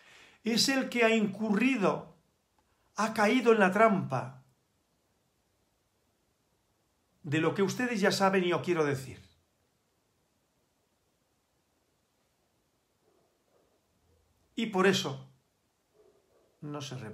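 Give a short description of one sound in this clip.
An elderly man speaks calmly into a microphone, close by, in short phrases with pauses.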